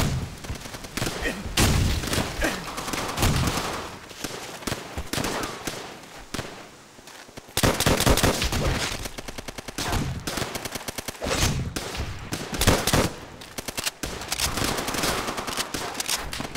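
Gunshots crack and boom repeatedly in a firefight.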